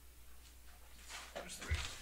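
A plastic game piece slides briefly across a tabletop mat.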